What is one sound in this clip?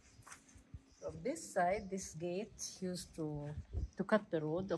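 An elderly woman speaks with animation close by.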